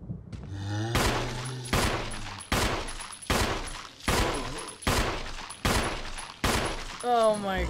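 Gunshots fire in quick succession.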